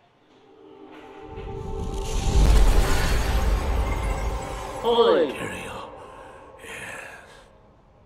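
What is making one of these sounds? Music swells with a deep rumble and fades.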